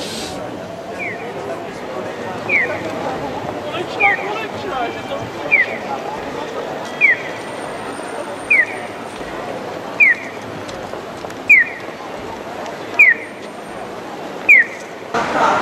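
A pedestrian crossing signal chirps over and over at an even pace.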